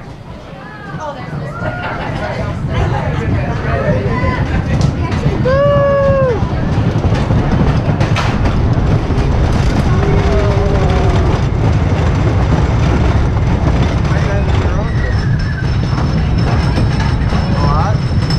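Riders cheer and shout with excitement close by.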